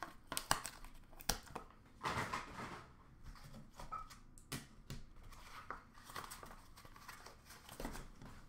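Hands rummage through a box of cards and plastic cases, with clicks and rustling.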